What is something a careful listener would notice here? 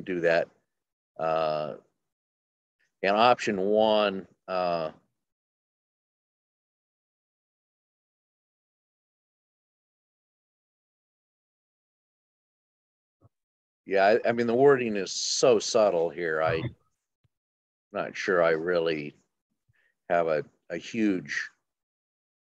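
An elderly man speaks calmly into a microphone, heard as if over an online call.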